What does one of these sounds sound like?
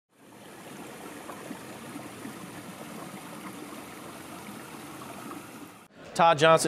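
Water splashes steadily down a small waterfall over rocks.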